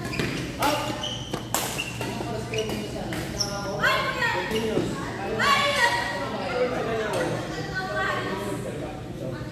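Badminton rackets strike a shuttlecock with sharp pops in an echoing hall.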